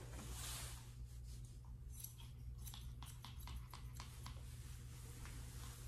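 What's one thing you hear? Scissors snip quickly through hair.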